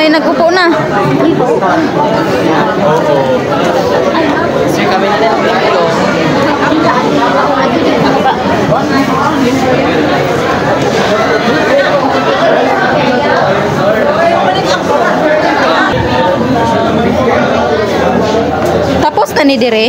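A crowd of men and women chatters throughout a busy, echoing room.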